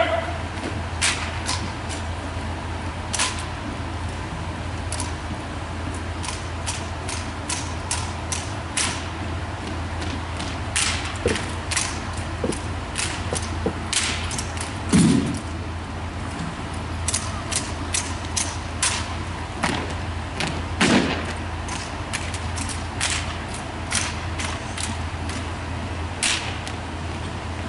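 Rifles clack and slap in drill handling, echoing in a large hall.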